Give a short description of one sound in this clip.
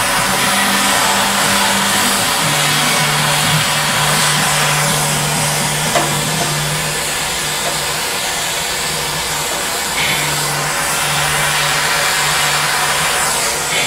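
A gas torch hisses and roars steadily.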